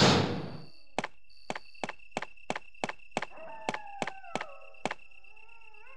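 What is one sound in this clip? Footsteps tread on a hard floor.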